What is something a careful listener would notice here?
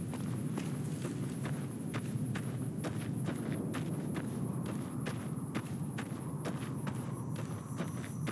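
Footsteps crunch steadily on dry, gravelly ground.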